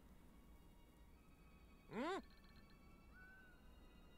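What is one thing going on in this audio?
Soft game music plays quietly.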